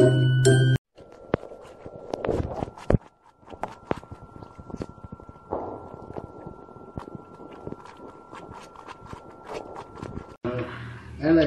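A dog's paws tap and scrape on ice.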